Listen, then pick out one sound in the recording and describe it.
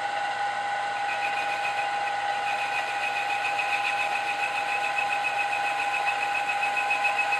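A small cutter drills into metal with a high, chattering whine.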